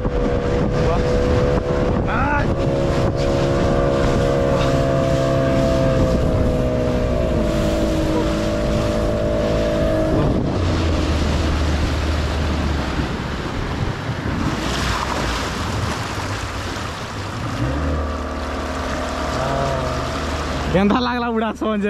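Water rushes and splashes under a towed inflatable tube.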